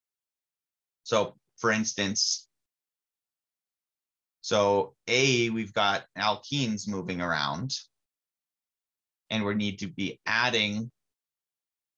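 A man speaks calmly into a close microphone, explaining in short bursts with pauses.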